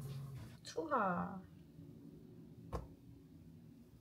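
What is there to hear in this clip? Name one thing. A ball plops softly into milk.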